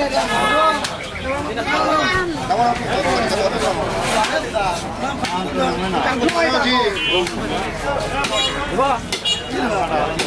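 A cleaver chops through meat and thuds on a wooden block.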